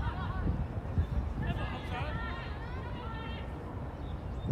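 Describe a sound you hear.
Young men shout to each other in the distance outdoors.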